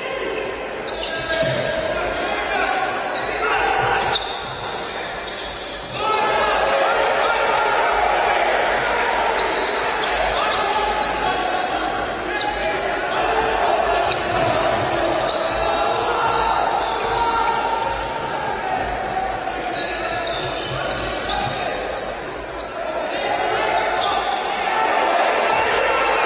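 Spectators murmur in a large echoing hall.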